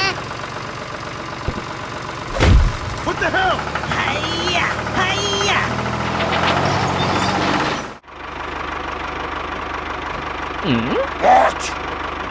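A small toy tractor motor whirs steadily.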